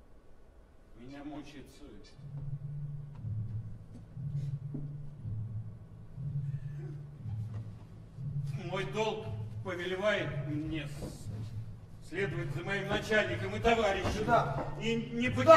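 A middle-aged man speaks loudly and with feeling.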